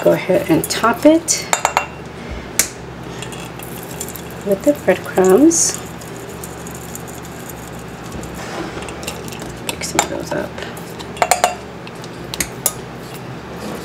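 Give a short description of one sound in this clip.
A spoon scrapes against a metal bowl.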